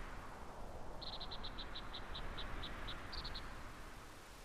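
Short electronic blips tick rapidly in a quick run.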